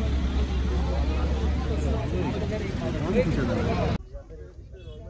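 A crowd of people talks outdoors.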